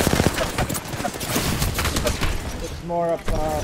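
Rapid gunshots fire at close range.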